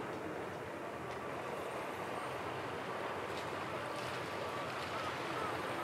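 Gentle waves lap softly against rocks on the shore.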